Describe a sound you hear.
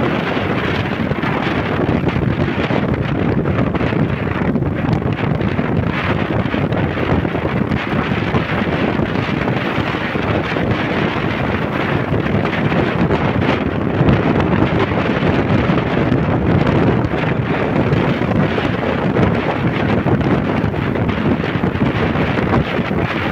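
Wind rushes loudly past a moving motorbike.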